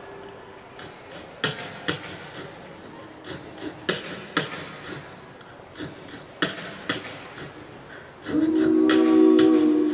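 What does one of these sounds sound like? A young man beatboxes a quick, steady rhythm into a microphone.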